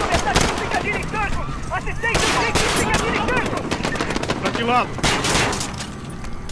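Gunfire cracks in rapid, sharp bursts.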